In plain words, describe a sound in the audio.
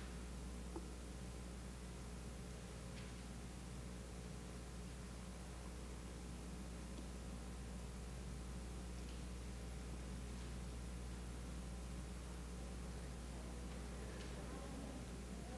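Footsteps cross a hard floor.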